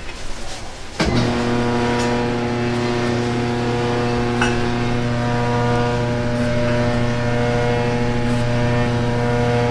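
A machine hums steadily.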